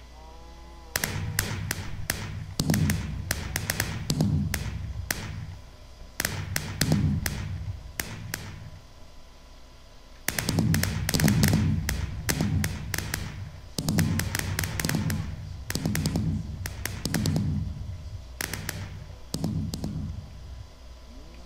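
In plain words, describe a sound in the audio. Fireworks burst and crackle in rapid bursts overhead.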